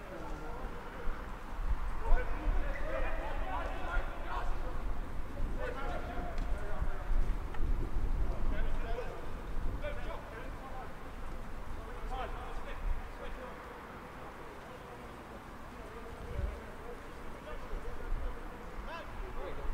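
Players shout and call to each other across an open field.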